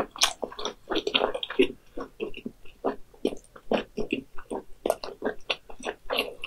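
A young woman slurps and smacks her lips close to a microphone.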